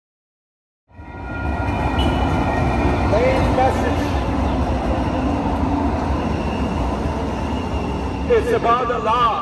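A tram rumbles past nearby.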